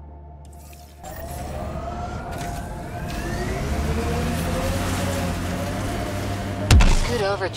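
A futuristic rover's engine whines, rising in pitch as it speeds up.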